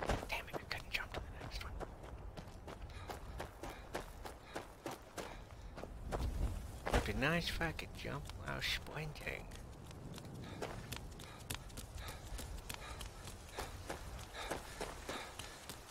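Footsteps crunch quickly over gravel and stone.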